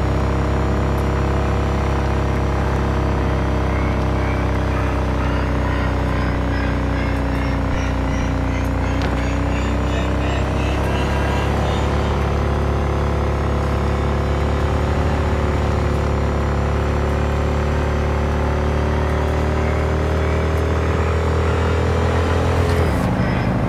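A motorcycle engine drones at cruising speed.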